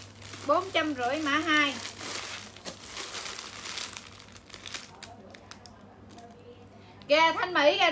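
Plastic bags crinkle.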